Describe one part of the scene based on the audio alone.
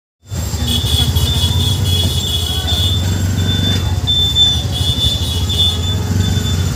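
A cycle rickshaw rattles and creaks as it rolls along the street.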